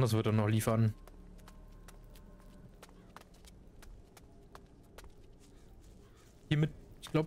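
Footsteps patter quickly over stone.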